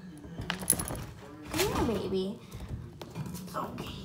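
A young girl giggles.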